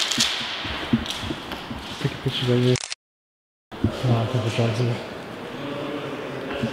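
Footsteps crunch over scattered debris in a large, echoing empty hall.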